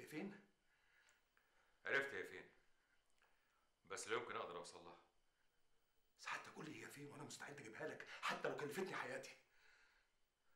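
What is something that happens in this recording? An elderly man speaks in a low, serious voice close by.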